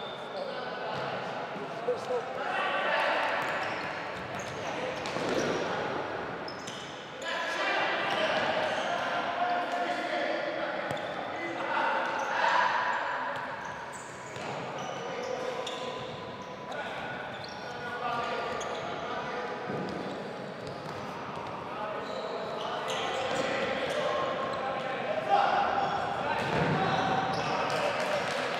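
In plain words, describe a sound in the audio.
Players' shoes squeak on a hard floor in a large echoing hall.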